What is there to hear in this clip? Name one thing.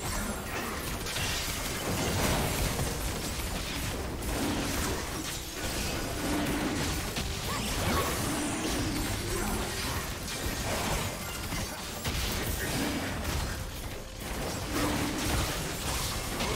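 Spell effects crackle and boom in a busy battle.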